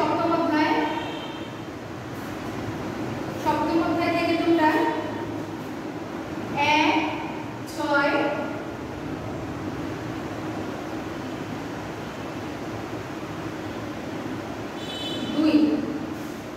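A woman speaks calmly in short phrases, as if teaching.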